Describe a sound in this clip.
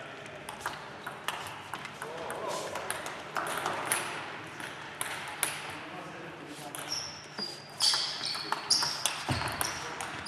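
A table tennis ball pops off bats in a quick rally.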